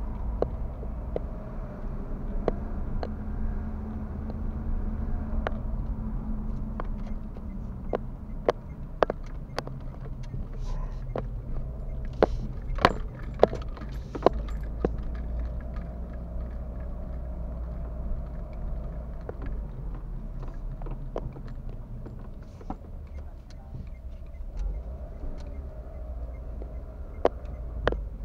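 Tyres roll over a bumpy road surface with occasional knocks and rattles.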